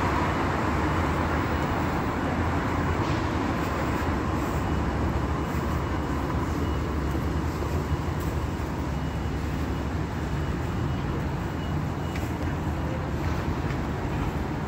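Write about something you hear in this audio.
Traffic hums steadily along a city street nearby.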